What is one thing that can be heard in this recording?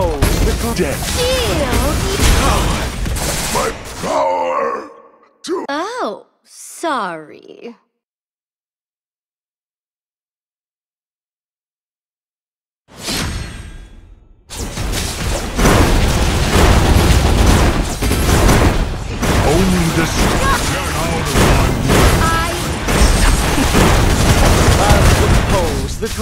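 Game battle effects crash, blast and whoosh.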